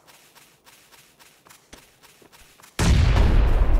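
Footsteps run quickly over dry ground.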